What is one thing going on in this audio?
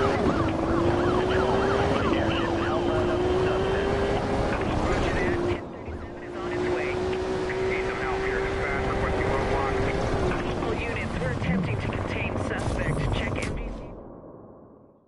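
A sports car engine roars at high revs as the car races along.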